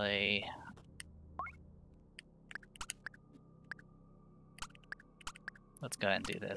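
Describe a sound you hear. Short electronic menu blips tick in quick succession.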